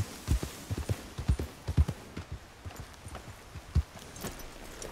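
Horse hooves thud rapidly on the ground.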